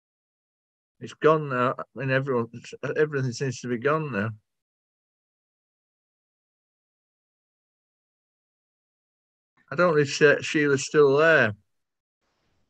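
An elderly man speaks calmly over an online call, in short bursts with pauses.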